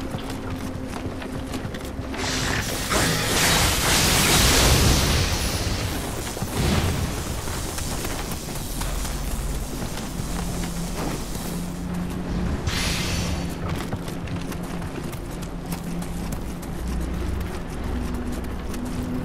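Footsteps patter quickly on wooden boards and ground.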